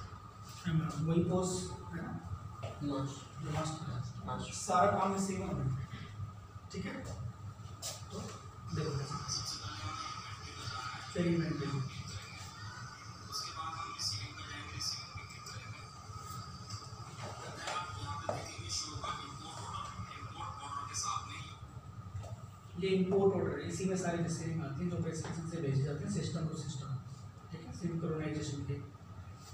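A man speaks nearby to a small group, explaining with animation.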